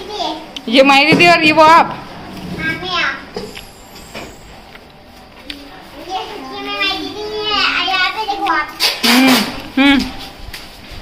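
A young boy talks excitedly close by.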